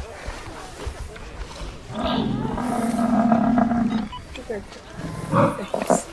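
A snow leopard snarls and growls.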